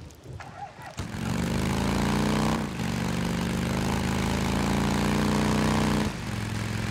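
A motorcycle engine roars as the bike rides off.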